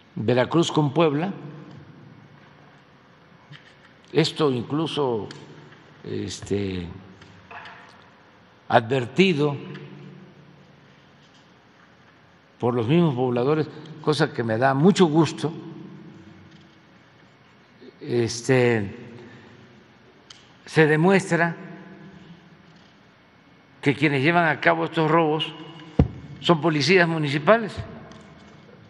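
An elderly man speaks slowly and deliberately into a microphone, in short phrases with long pauses.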